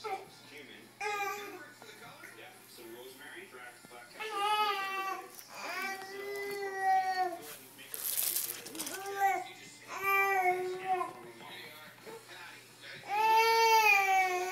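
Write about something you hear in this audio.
A baby coos and babbles up close.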